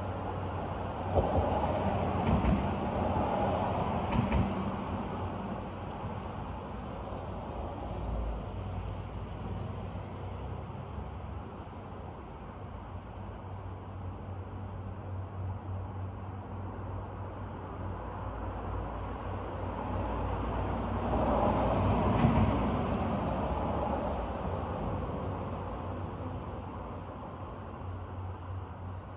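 Wind rustles through the trees outdoors.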